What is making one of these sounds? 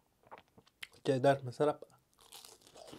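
Crispy food crunches loudly close to a microphone as a young man bites.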